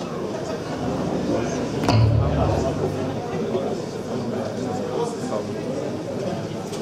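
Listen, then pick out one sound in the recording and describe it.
A crowd murmurs and cheers.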